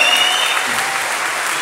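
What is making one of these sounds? A folk band's final chord rings out and dies away.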